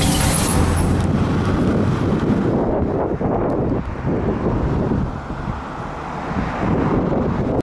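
A bus idles at a roadside stop outdoors.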